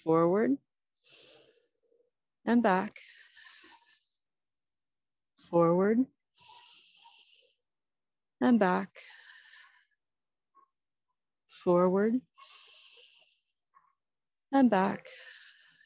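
A woman breathes out hard after each shout.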